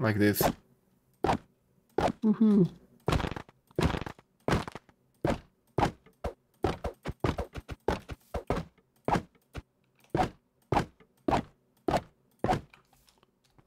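A sword repeatedly strikes a wooden target with sharp hits.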